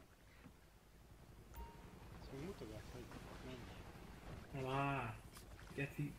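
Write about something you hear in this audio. A boat engine hums on the water.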